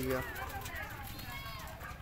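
A pigeon flaps its wings.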